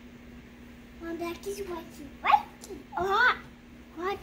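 A little girl babbles and squeals in a high voice close by.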